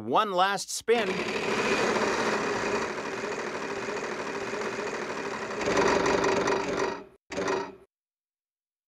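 A prize wheel spins with rapid ticking clicks.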